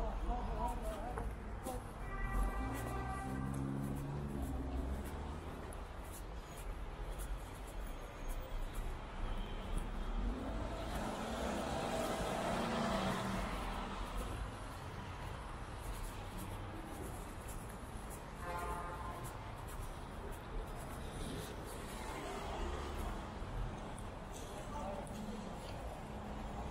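Tyres hiss on wet pavement as vehicles pass.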